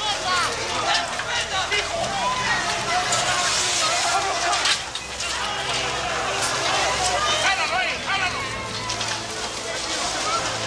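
Several men shout urgently over one another.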